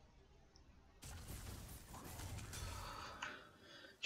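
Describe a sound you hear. Video game combat effects clash and crackle.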